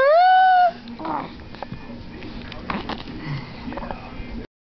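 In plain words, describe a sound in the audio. A baby coos and babbles softly.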